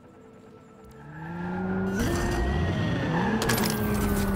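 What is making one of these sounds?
A car engine revs up loudly as the car speeds along.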